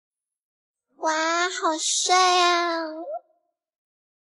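A young woman exclaims excitedly close by.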